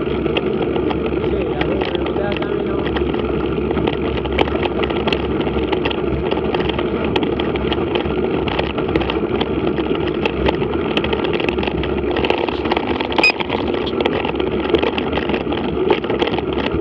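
Bicycle tyres crunch and rattle over a gravel track.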